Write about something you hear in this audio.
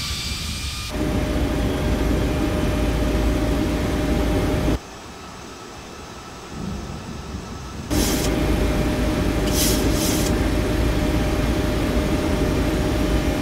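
Jet engines hum muffled from inside an airliner cockpit.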